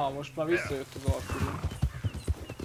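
A horse's hooves thud as it gallops over grass.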